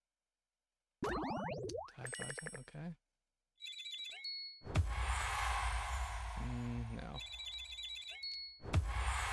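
Bright game chimes and jingles ring out in quick bursts.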